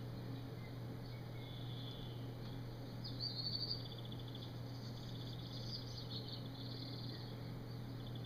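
A man puffs softly on a pipe.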